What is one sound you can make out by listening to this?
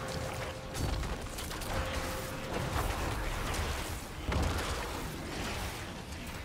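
Magic blasts and heavy hits crash again and again in a fierce fight.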